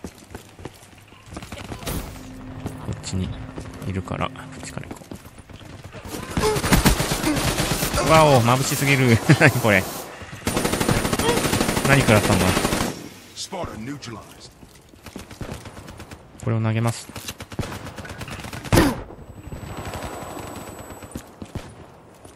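Rapid gunfire cracks in short bursts.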